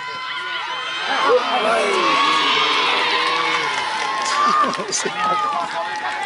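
A large outdoor crowd cheers and shouts loudly, then dies down.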